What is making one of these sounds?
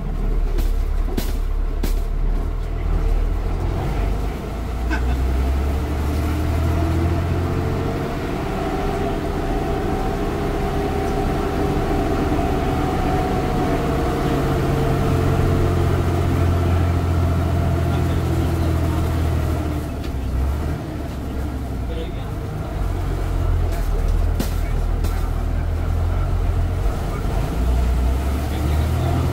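A bus body rattles and clatters over the road.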